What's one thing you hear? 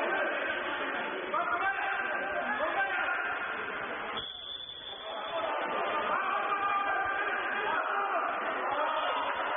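Water splashes loudly as swimmers thrash in an echoing pool.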